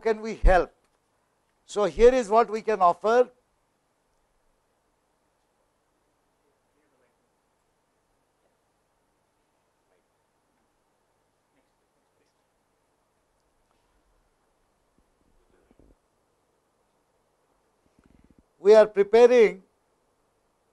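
An older man speaks calmly into a microphone, heard through an online call.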